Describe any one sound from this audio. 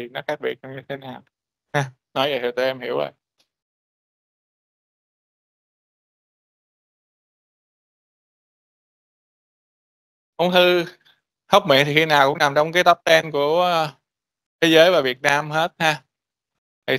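A man lectures calmly through a microphone, with pauses.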